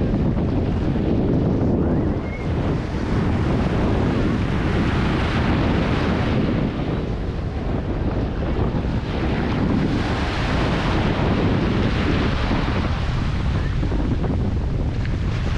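Small waves wash and break on a sandy shore.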